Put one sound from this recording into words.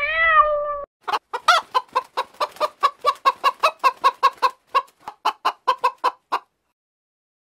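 A hen clucks rapidly.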